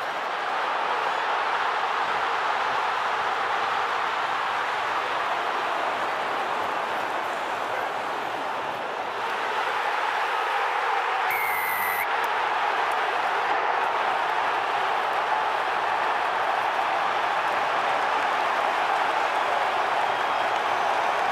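A large stadium crowd roars and cheers throughout.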